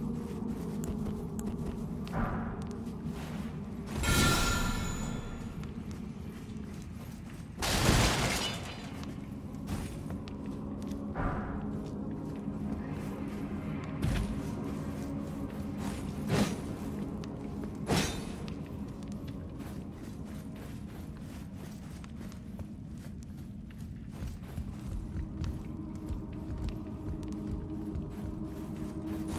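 Footsteps crunch on dirt and thud on wooden boards.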